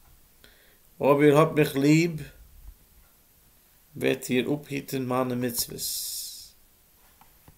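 A middle-aged man speaks calmly and close up, in short bursts.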